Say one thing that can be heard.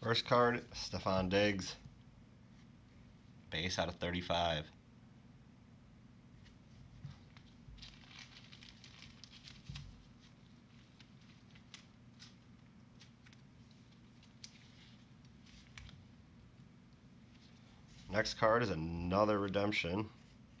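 Trading cards rustle and tap softly as they are handled.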